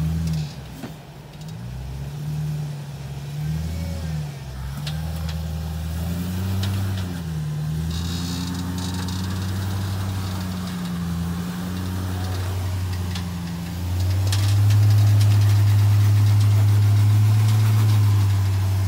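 Tyres scrape and grind on rock.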